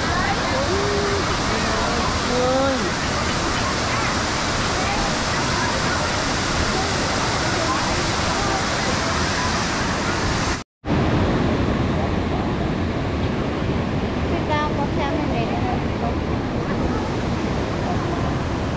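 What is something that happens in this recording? A waterfall roars steadily close by.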